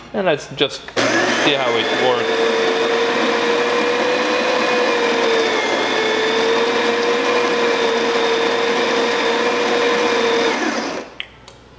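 A coffee machine grinds beans with a loud, steady whirr.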